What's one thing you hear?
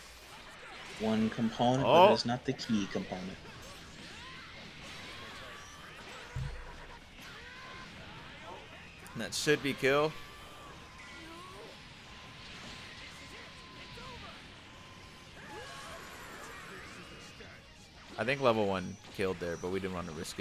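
Punches and energy blasts crash and whoosh in a fighting game.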